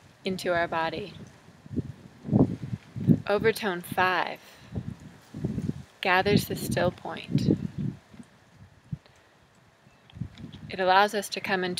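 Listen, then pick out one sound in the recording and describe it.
A woman speaks calmly and closely to the listener.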